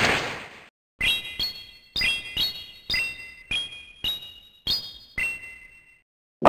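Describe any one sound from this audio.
Bright game chimes ring out in quick succession.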